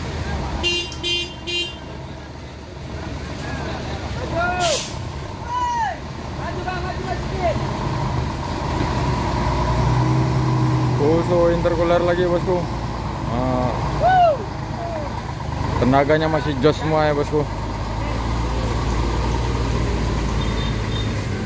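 A heavy truck engine rumbles and revs nearby.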